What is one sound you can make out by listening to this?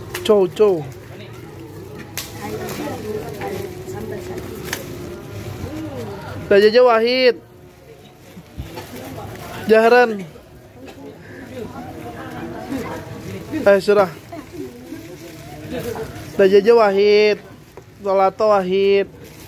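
Young boys chatter nearby.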